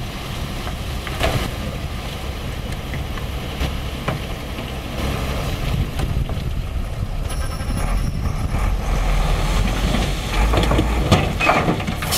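Dirt slides and pours from a tipping truck bed.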